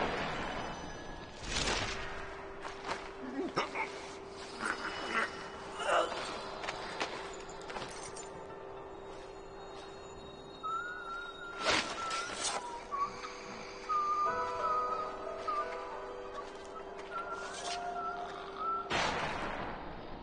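A sharp rushing whoosh sweeps past.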